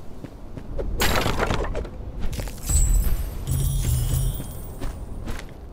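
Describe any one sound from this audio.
A magic energy blast whooshes and crackles loudly.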